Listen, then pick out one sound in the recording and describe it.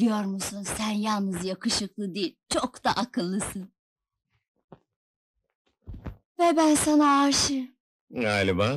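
A young woman talks with animation.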